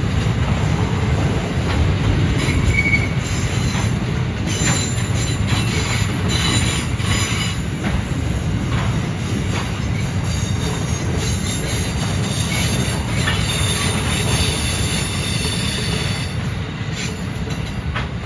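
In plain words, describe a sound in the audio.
A long freight train rumbles steadily past, close by.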